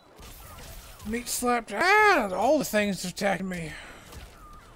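A game character cries out loudly in pain.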